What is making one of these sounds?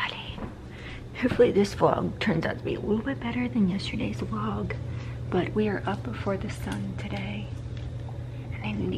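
A young woman talks casually and close up.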